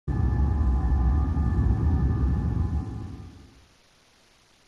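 Low, dark music plays and then fades away.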